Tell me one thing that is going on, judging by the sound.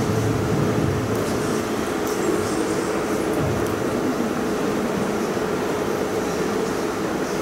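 A man speaks calmly through a microphone in a large echoing hall.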